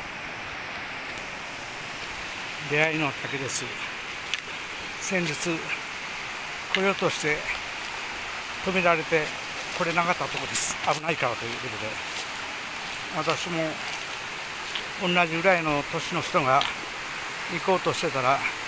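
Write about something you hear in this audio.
Footsteps crunch on dry leaves and stones.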